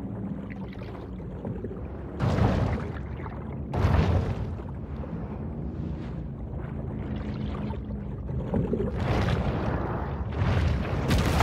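Water whooshes in bursts as a large fish swims fast underwater.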